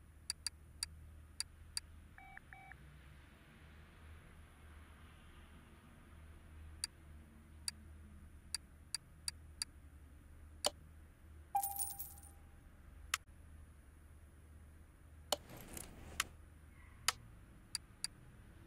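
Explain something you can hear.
Short interface clicks tick now and then as menu items are selected.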